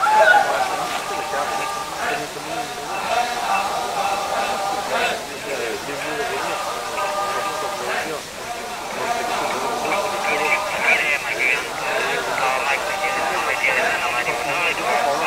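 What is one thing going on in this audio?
A large group of men and women chant and sing together in unison outdoors.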